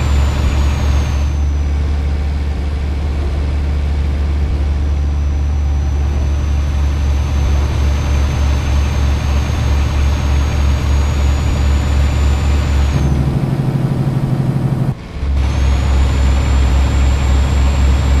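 A truck engine drones steadily with a deep rumble.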